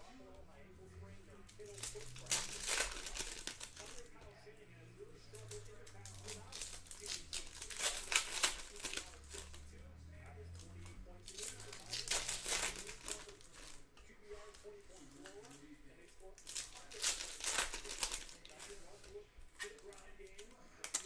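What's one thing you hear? Foil wrappers crinkle and tear as hands rip open packs.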